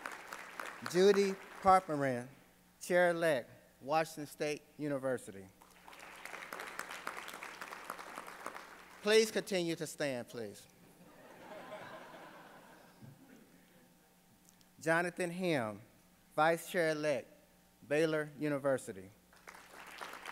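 A man speaks calmly into a microphone in a large hall, pausing between phrases.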